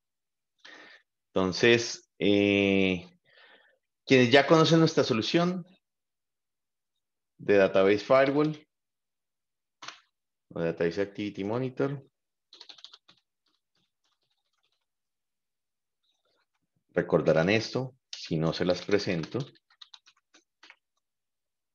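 A man speaks calmly over an online call, pausing often.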